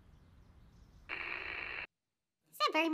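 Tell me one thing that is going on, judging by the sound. A young woman speaks through an online call.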